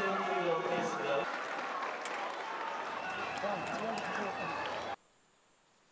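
A crowd cheers and chatters loudly.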